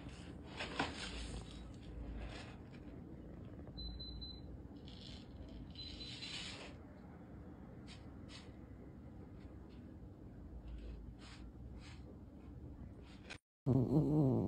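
A cat scratches and rustles in loose litter.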